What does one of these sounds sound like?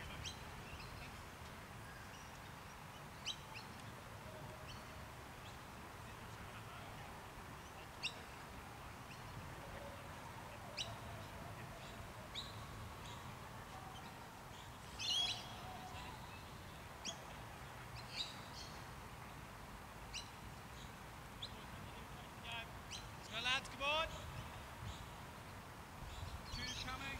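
Light wind blows across an open field.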